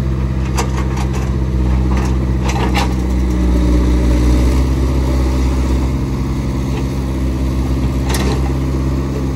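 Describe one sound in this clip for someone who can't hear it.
A metal excavator bucket clanks and knocks against earth and stone.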